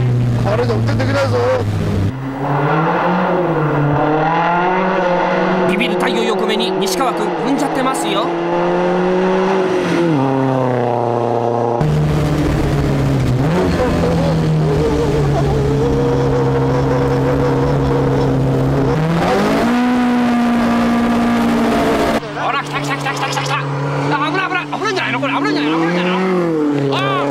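A car engine revs hard and roars, rising and falling in pitch.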